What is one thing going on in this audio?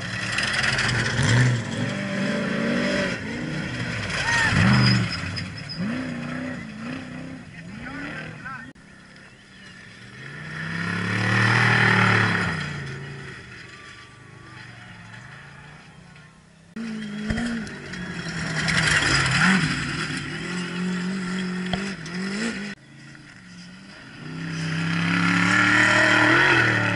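Race truck engines roar loudly, swelling and fading as they speed past.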